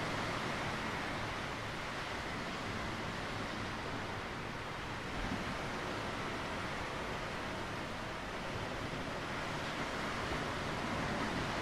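Waves wash gently onto a rocky shore.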